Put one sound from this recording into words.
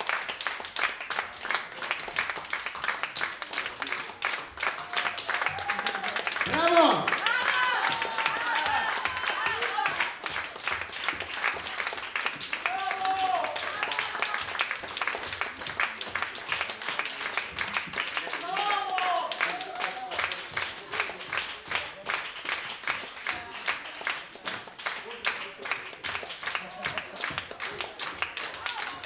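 An audience applauds and cheers loudly in an echoing room.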